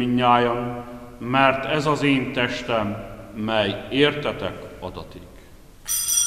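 A man chants in a steady singing voice through a microphone in a large echoing hall.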